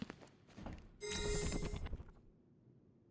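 A short electronic chime rings out.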